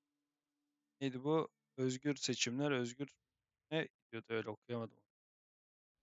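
A man speaks with animation, close to a microphone, in short bursts.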